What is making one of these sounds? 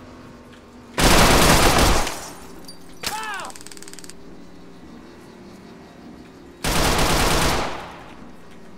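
A gun fires loud rapid bursts.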